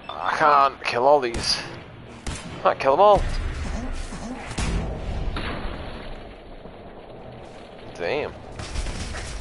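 A laser gun fires in sharp, warbling zaps.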